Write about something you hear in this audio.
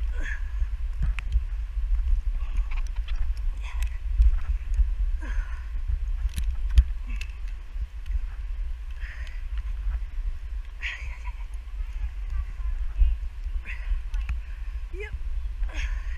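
Ropes creak and rattle as hands grip them.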